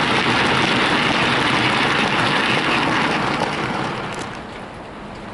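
A model train rumbles and clatters closely past along the track, then fades.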